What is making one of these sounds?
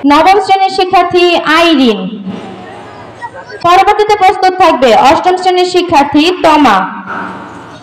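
A woman sings loudly through a loudspeaker outdoors.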